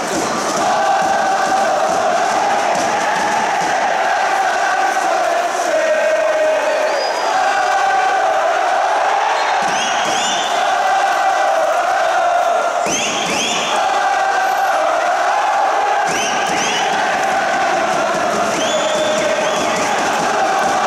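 A crowd of fans chants loudly in unison in an open stadium.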